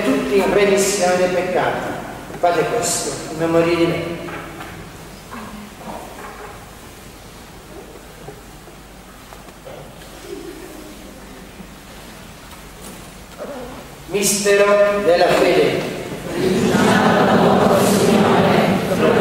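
An elderly man chants into a microphone in an echoing church.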